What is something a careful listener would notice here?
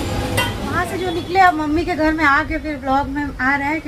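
A woman speaks calmly and close to the microphone.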